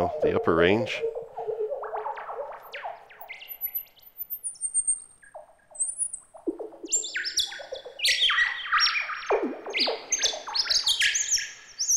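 A synthesizer plays quick, bright electronic blips in a sequence.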